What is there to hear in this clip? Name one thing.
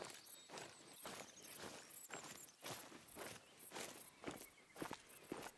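Footsteps crunch and rustle through undergrowth at a steady walking pace.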